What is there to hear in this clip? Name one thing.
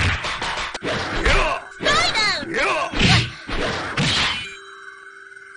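Video game punches and kicks land with sharp, heavy thuds.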